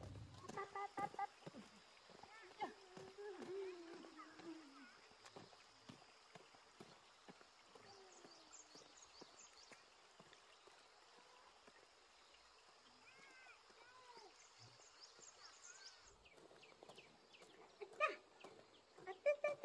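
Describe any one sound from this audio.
Footsteps tap lightly on a paved road.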